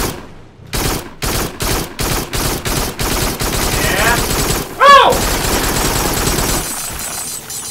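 Gunshots fire in a quick series of loud bangs.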